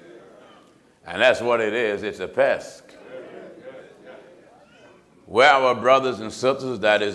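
A man preaches loudly and with passion into a microphone in a large echoing hall.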